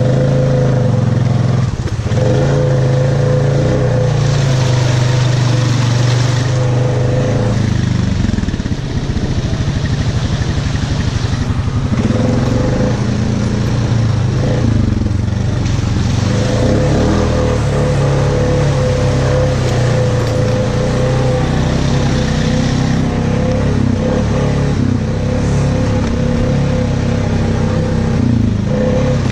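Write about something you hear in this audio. A quad bike engine roars steadily close by.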